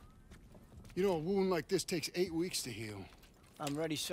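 A young man speaks firmly, close by.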